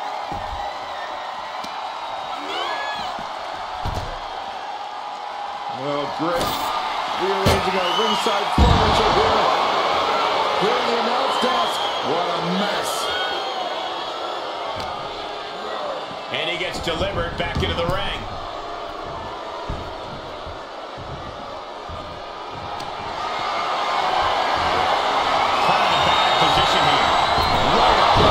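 A large crowd cheers and roars throughout, swelling louder toward the end.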